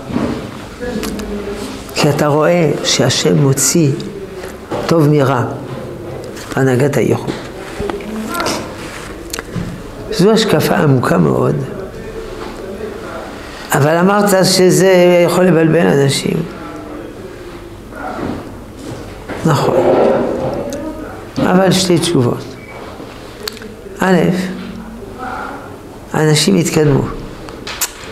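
An elderly man speaks calmly and with emphasis, close by.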